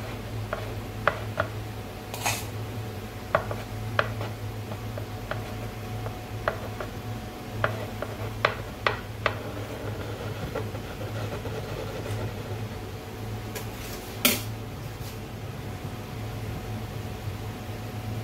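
A metal spatula scrapes and taps against a turning cake stand.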